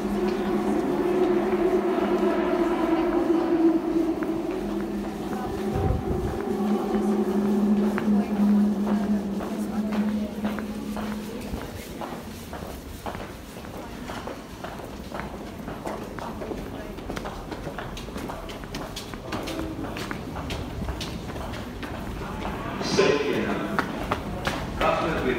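Footsteps tap on a hard floor in an echoing underground passage.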